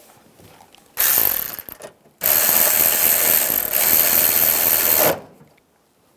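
A power drill whirs loudly in short bursts.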